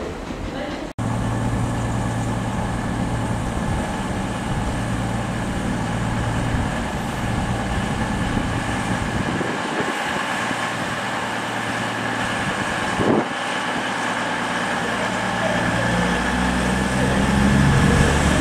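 A diesel train engine rumbles and hums steadily.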